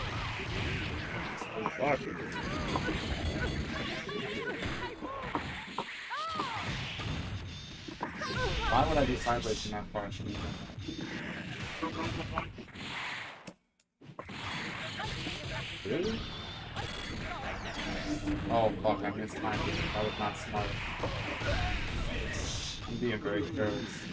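A young man talks with animation near a microphone.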